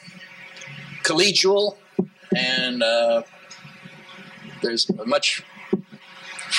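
A middle-aged man speaks with animation into a microphone in a hall that echoes a little.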